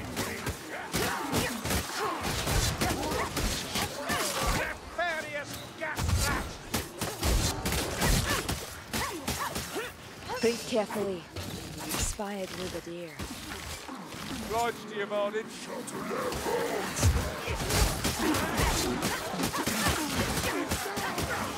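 Blades hack and slash repeatedly in a chaotic melee.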